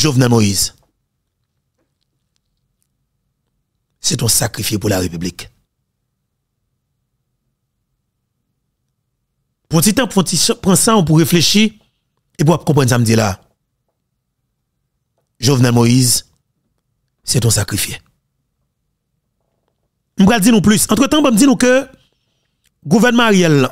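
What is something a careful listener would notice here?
A man speaks close to a microphone in short bursts, with pauses between.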